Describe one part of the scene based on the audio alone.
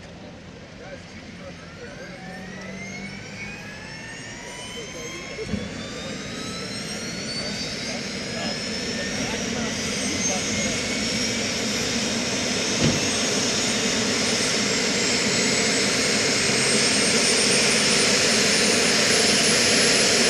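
A helicopter's turbine engine starts up, its whine rising in pitch and growing steadily louder.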